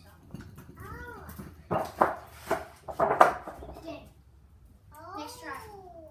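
Scooter wheels roll and rattle over paving.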